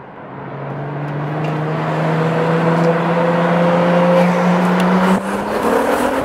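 A car engine hums and slowly rises in pitch.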